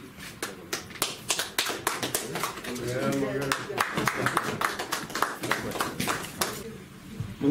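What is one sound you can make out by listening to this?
People clap their hands in a room.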